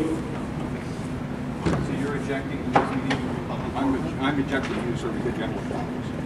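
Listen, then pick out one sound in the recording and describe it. An older man speaks firmly up close.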